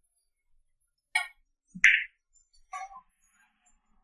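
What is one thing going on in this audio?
Billiard balls click sharply against each other.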